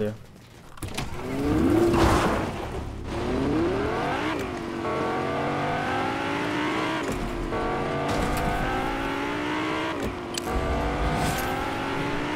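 A sports car engine revs up and down, rising and falling in pitch.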